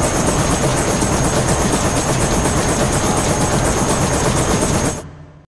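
A jet engine roars steadily, then cuts off abruptly.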